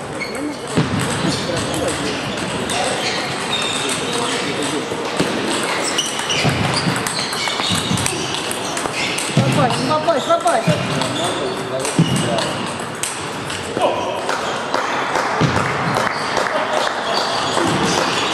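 A table tennis ball clicks quickly back and forth off paddles and a table in an echoing hall.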